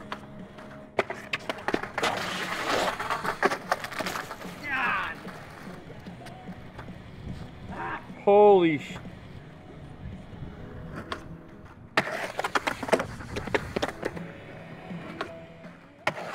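Skateboard wheels roll and grind on rough concrete.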